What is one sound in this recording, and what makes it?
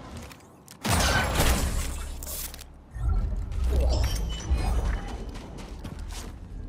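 Footsteps crunch on dry sandy ground.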